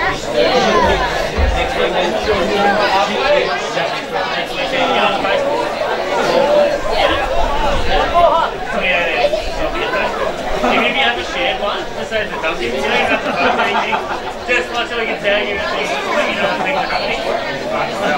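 Young women shout and call to each other across an open field outdoors.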